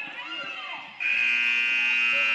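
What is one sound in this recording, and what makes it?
A loud buzzer sounds.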